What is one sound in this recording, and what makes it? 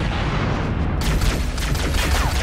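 An explosion bursts with a hissing rush.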